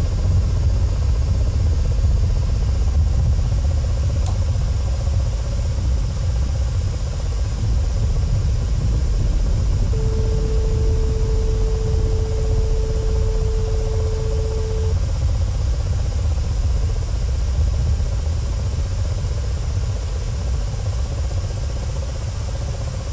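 A helicopter's engine and rotor drone steadily from inside the cockpit.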